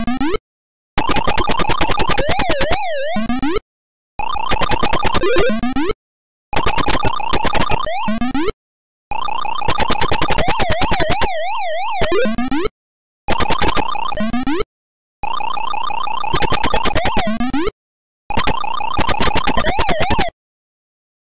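A video game's electronic chomping sound beeps rapidly in short bursts.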